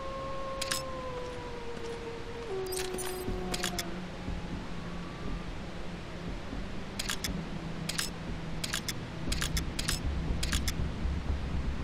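Short clicks sound as a scope zooms in and out.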